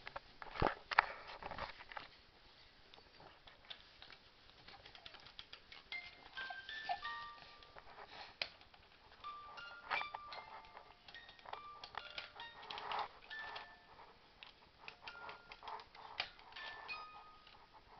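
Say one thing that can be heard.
A baby coos and babbles softly close by.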